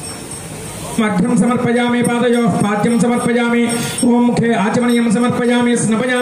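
A man chants in a steady, ringing voice.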